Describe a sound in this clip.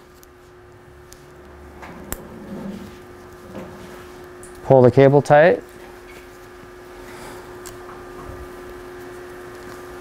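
A thin metal pin clicks and scrapes lightly against a metal cap.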